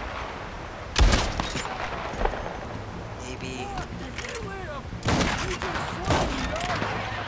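A revolver fires loud shots that echo briefly.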